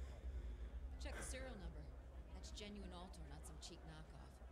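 A young woman speaks calmly and confidently.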